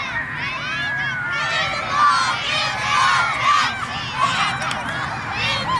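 Many children shout and cheer excitedly outdoors.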